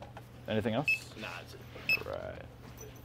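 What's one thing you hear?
A handheld scanner beeps.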